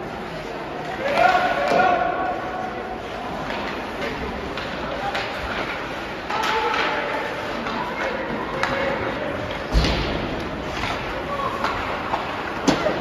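Players call out to one another across the rink.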